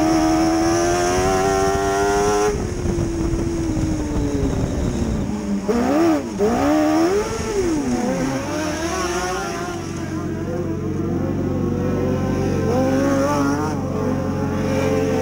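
A race car engine roars loudly up close, revving up and down.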